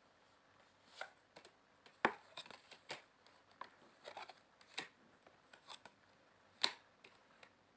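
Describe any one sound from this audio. Playing cards riffle and tap softly as they are shuffled by hand.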